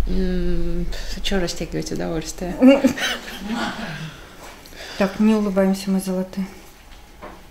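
A woman speaks close by, calmly.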